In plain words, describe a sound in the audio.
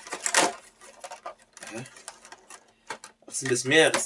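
A plastic case clicks and rattles as hands handle it.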